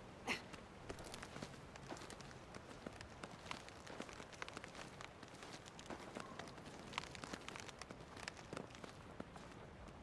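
Hands grip and knock along a wooden branch in quick taps.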